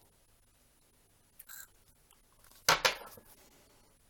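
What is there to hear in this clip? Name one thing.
A card is laid down on a wooden table with a soft tap.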